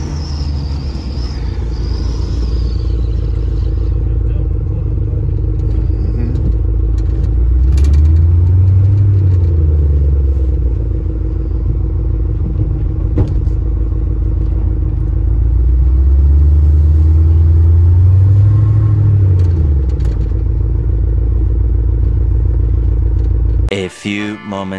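A truck engine rumbles deeply from inside the cab.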